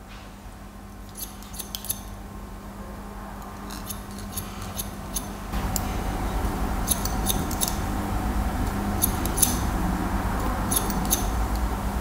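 Scissors snip through hair close by.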